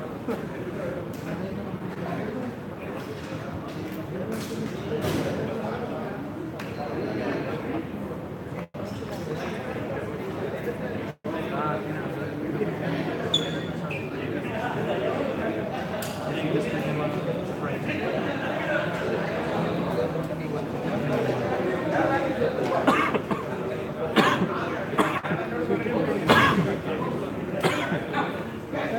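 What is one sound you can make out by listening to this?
Men talk nearby, in a large echoing hall.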